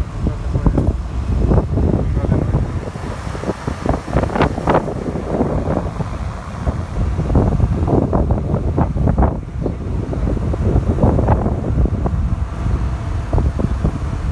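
Leaves rustle in the wind.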